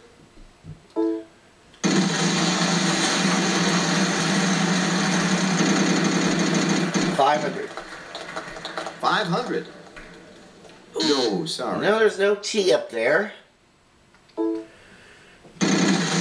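A game show wheel clicks rapidly as it spins.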